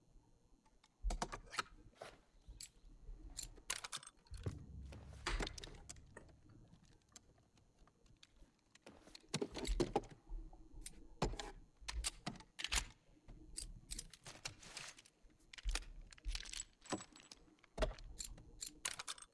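Metal parts of a pistol click and clack as they are handled.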